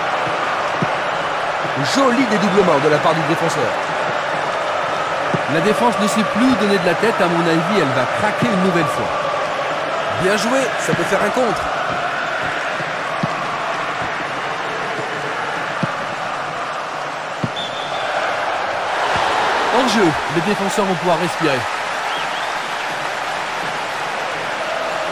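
A large stadium crowd murmurs and cheers steadily, swelling briefly into a louder roar.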